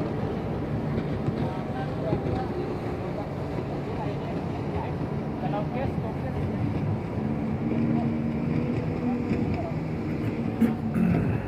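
Small waves lap and splash against each other.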